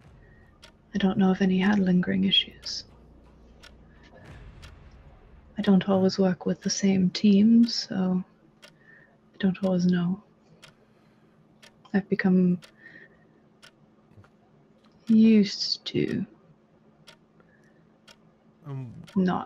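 A woman speaks calmly over an online call, in short bursts.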